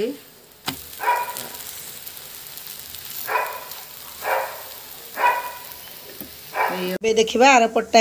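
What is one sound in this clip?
Oil sizzles softly in a frying pan.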